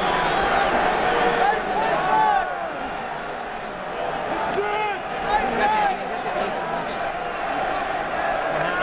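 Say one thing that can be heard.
A large crowd murmurs and chatters steadily in a big echoing arena.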